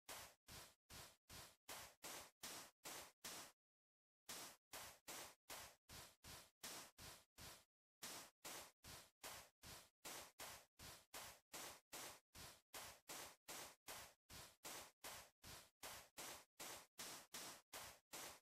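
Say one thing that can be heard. Footsteps tap quickly and steadily on stone.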